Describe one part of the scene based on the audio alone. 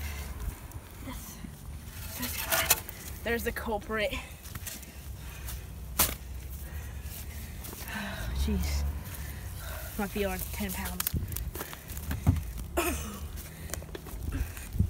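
A pickaxe thuds into wet mud.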